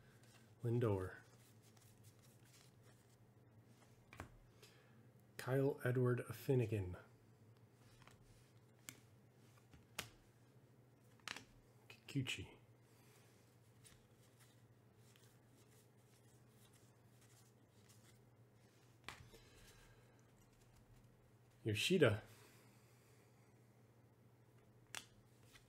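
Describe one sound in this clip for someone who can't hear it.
Cardboard cards shuffle and slide softly between fingers.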